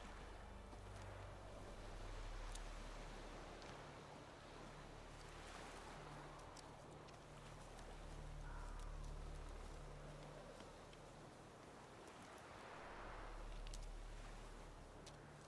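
Wind gusts outdoors, rising and falling in slow waves.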